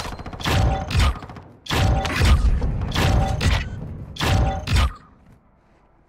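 Short bright chimes and whooshes ring out from a video game as points are tallied.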